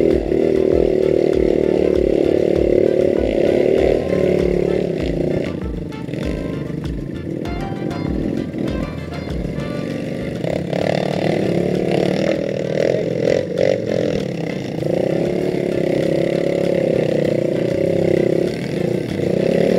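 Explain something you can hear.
Other motorcycle engines rumble up ahead on the trail.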